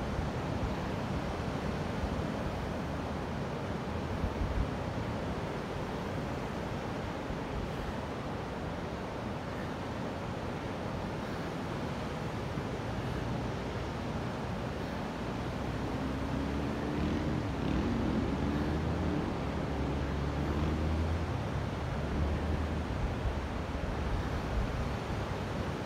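Waves wash on the shore nearby.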